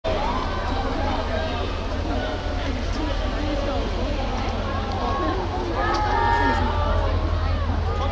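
A crowd of young women chatter and call out excitedly close by.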